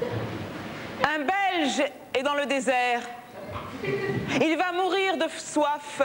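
A woman speaks expressively on a stage, heard through a microphone.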